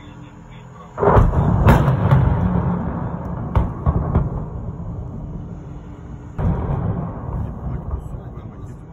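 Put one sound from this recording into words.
Heavy explosions boom and rumble in the distance outdoors.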